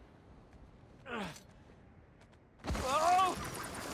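A body drops and lands heavily on rocky ground.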